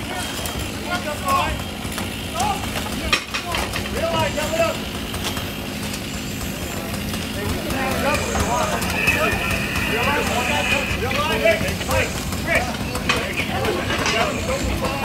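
Tools chop and pry at a roof with sharp knocks.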